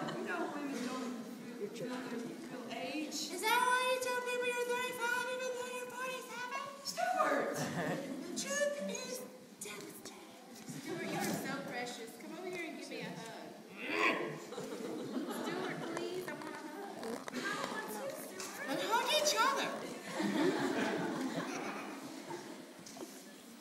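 A woman speaks on a stage in an echoing hall.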